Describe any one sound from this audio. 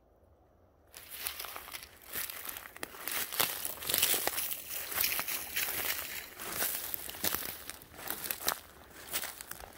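Footsteps crunch through dry leaves and twigs close by.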